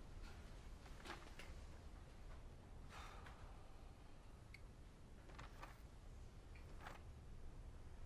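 A man speaks quietly nearby.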